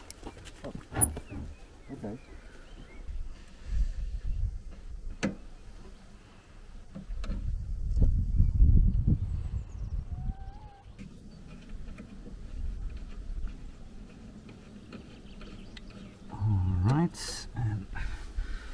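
Tools click and clatter against metal.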